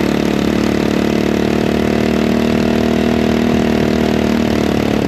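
An off-road buggy engine drones steadily up close.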